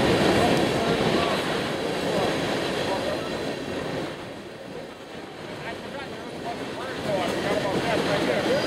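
A freight train rumbles past close by, its wheels clattering and squealing on the rails.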